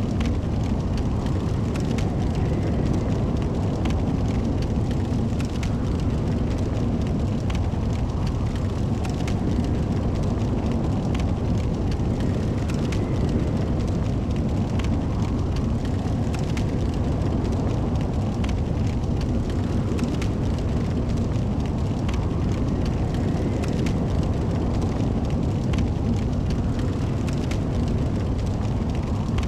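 Flames crackle and roar steadily.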